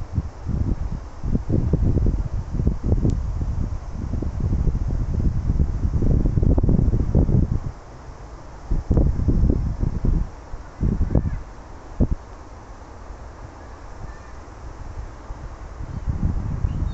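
Wind gusts buffet the microphone outdoors, coming and going.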